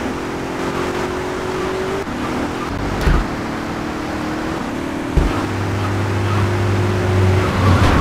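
A car engine hums steadily and shifts pitch as it drives.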